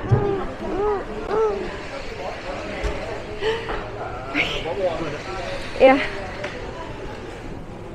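Several adults murmur and chat in the background.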